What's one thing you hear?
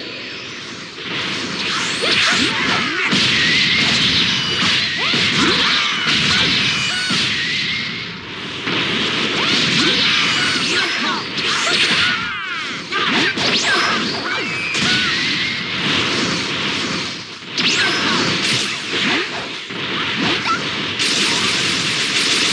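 Energy blasts crackle and whoosh during a fight.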